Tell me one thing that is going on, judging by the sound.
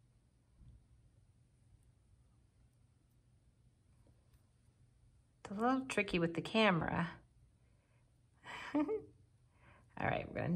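Metal knitting needles click softly against each other.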